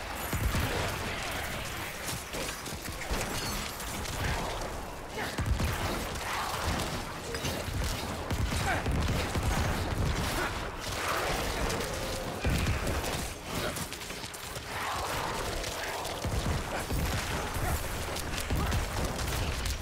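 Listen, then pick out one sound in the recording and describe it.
Game combat sounds of slashing blows and monster cries clash rapidly.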